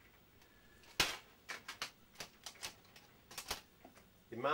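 Pens clink and rattle against a metal tin.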